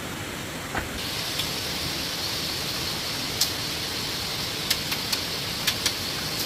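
Dry soil scrapes and rustles under hands.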